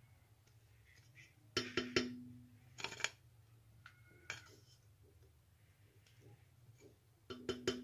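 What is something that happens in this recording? A knife scrapes against a plastic mold.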